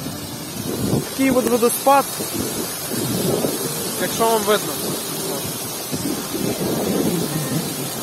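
Water trickles and splashes over a small weir.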